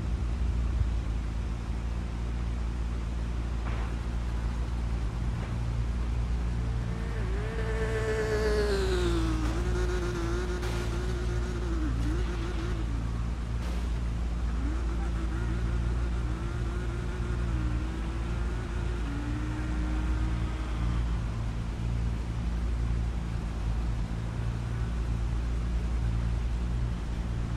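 A sports car engine idles with a steady low rumble.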